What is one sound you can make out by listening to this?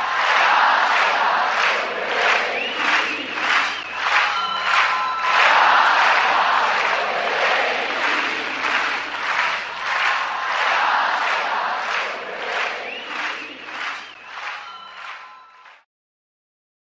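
A large outdoor crowd cheers and chatters.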